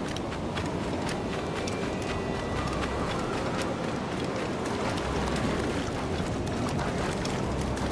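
Footsteps run across sand.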